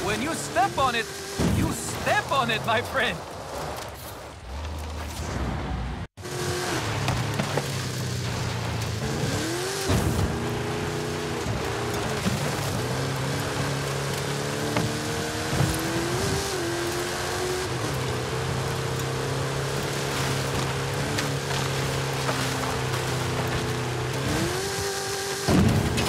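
Tyres crunch over loose sand and gravel.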